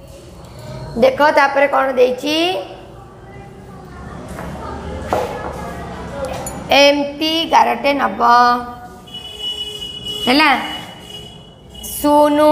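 A woman speaks clearly and expressively nearby, as if teaching.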